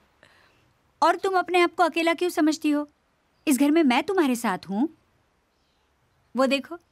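A middle-aged woman speaks firmly and with animation.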